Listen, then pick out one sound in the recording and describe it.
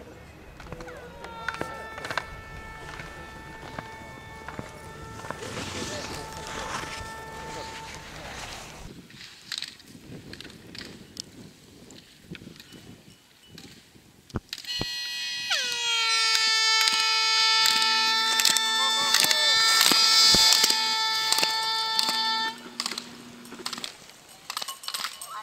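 Skis scrape and hiss over hard snow in quick turns.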